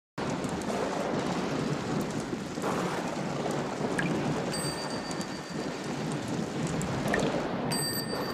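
Water drips and trickles from a roof edge.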